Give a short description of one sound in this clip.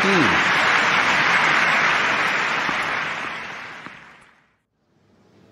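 A crowd applauds loudly and then fades away.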